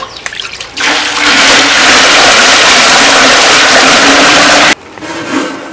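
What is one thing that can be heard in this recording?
Water pours and splashes heavily into a pot.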